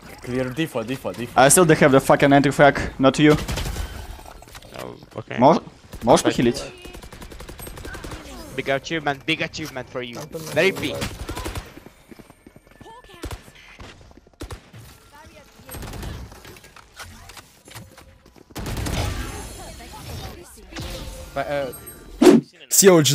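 A young man talks loudly and with animation close to a microphone.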